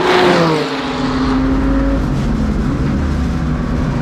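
A race car engine screams at full throttle from inside the car.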